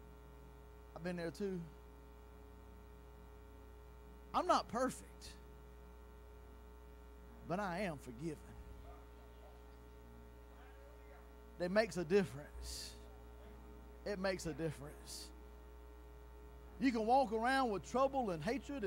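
A middle-aged man speaks with animation in short phrases through a microphone in an echoing hall.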